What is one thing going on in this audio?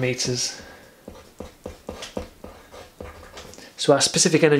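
A marker scratches and taps across paper.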